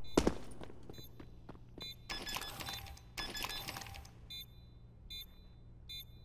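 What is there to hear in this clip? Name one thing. A timer beeps in short, high bursts at intervals.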